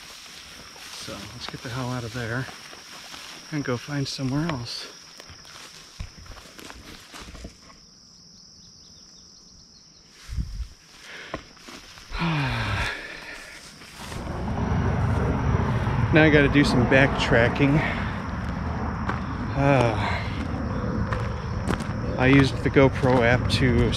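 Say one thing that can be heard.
A middle-aged man talks calmly and close to the microphone outdoors.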